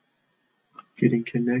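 A young boy starts speaking close to a computer microphone.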